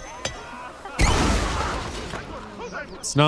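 A bomb bursts with a loud bang.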